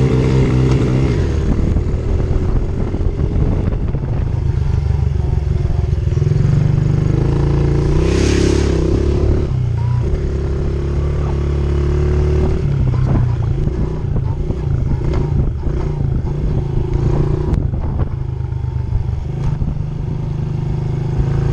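A small motorbike engine revs loudly up and down close by.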